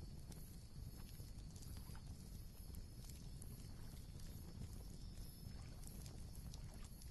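A fire burns with a low, steady rumble.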